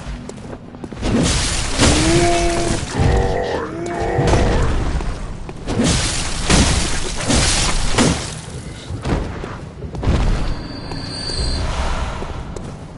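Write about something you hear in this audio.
Heavy blows strike and slash with sharp thuds.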